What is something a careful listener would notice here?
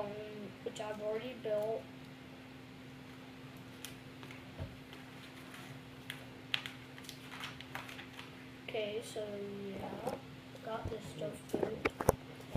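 A young boy talks calmly close by.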